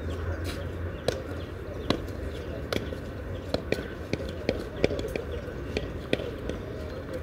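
A tennis ball bounces repeatedly on a clay court.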